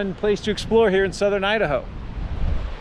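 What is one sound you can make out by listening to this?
A middle-aged man speaks calmly close to the microphone.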